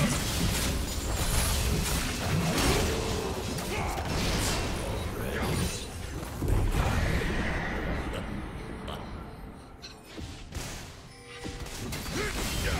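Game spells burst and weapons clash in a fast fight.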